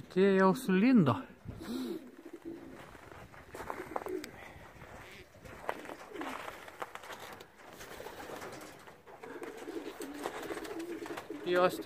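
Pigeons coo softly and steadily nearby.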